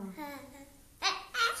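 A baby babbles briefly, close by.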